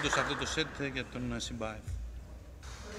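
A table tennis ball clicks rapidly back and forth between paddles and the table.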